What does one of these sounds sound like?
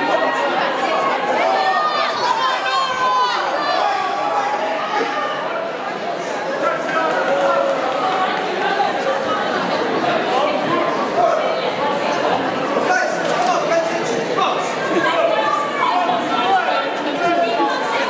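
A crowd of spectators chatters and cheers loudly in an echoing hall.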